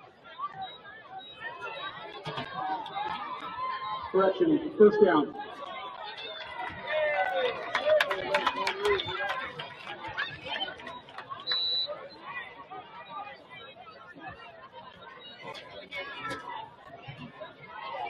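A crowd of players and spectators shouts and cheers outdoors.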